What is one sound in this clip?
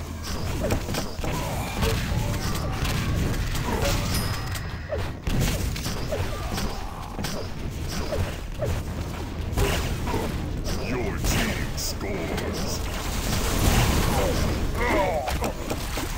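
An electric beam weapon crackles and hums.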